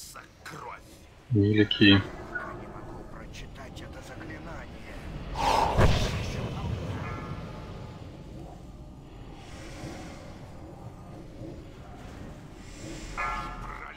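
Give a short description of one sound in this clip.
Spells crackle and boom in a game battle.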